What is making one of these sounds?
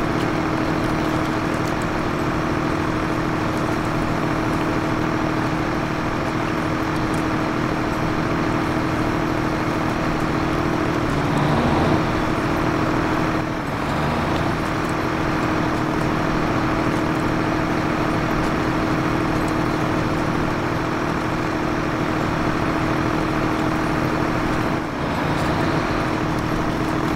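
A truck engine drones steadily as it labours uphill.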